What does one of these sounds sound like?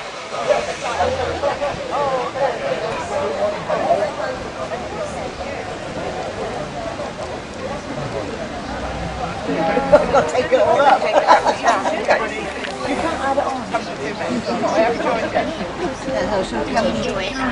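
A crowd of adults chatters outdoors nearby.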